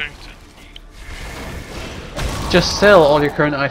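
A magical blast bursts with a rushing whoosh.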